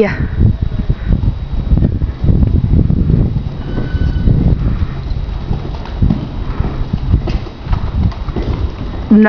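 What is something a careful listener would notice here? A horse's hooves thud softly on loose dirt at a steady walk.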